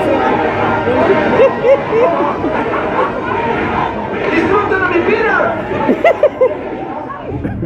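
A large crowd cheers and shouts excitedly.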